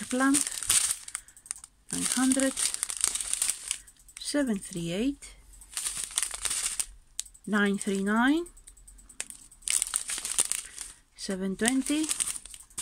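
Plastic bags crinkle and rustle close by as they are handled.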